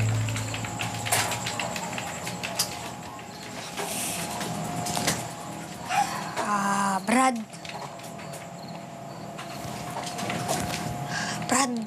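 A child taps quickly on a computer keyboard.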